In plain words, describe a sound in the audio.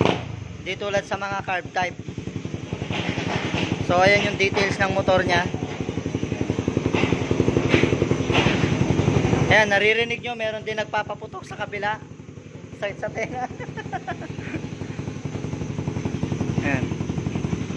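A motorcycle engine idles with a loud, rapid, throbbing exhaust note.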